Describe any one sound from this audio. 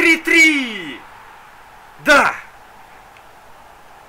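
A large stadium crowd cheers loudly.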